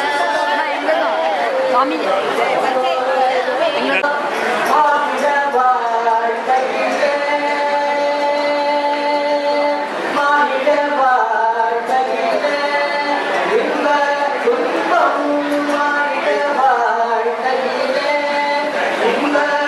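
A group of men chant through a microphone.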